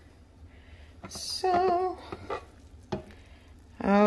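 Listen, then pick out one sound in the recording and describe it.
A glass lid clinks as it is lifted off a pot.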